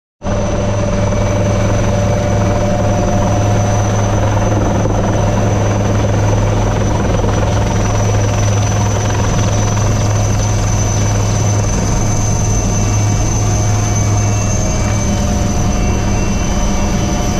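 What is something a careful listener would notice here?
A helicopter's engine and rotor roar loudly and steadily from inside the open cabin.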